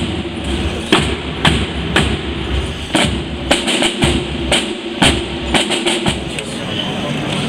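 A marching band's drums beat a steady rhythm close by.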